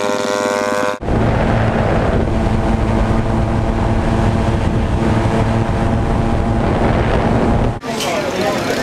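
Engines drone steadily in flight.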